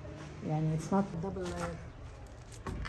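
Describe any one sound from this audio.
An elderly woman speaks with animation close by.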